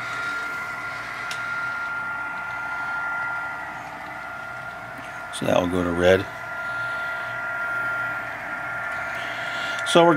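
A model train motor hums with a steady high whine.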